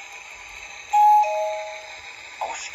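A model locomotive sounds a short two-tone horn.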